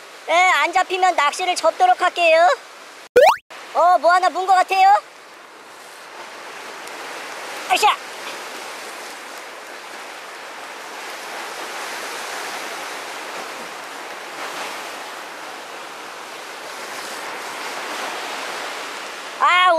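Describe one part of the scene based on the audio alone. Waves splash and wash against rocks.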